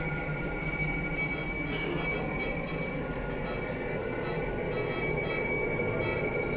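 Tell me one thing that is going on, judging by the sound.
Equipment hums steadily with a faint high whine.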